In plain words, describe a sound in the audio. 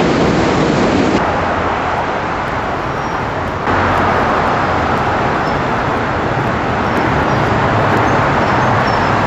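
A train rumbles and rattles loudly across a steel bridge.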